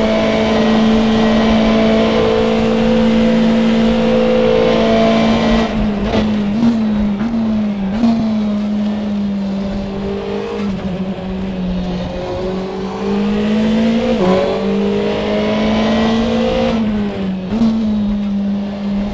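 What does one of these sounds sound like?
A racing car engine roars loudly at high revs, its pitch dipping briefly with each gear change.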